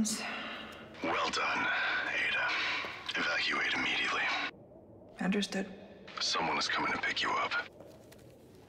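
A man speaks calmly through a radio.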